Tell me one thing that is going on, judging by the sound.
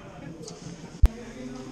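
A hand slaps down on a timer pad.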